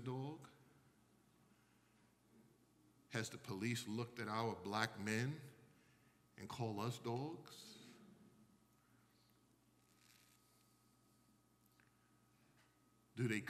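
A man preaches with emphasis into a microphone, his voice ringing in a large echoing hall.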